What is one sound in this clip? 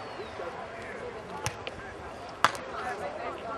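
A foot kicks a football with a thud.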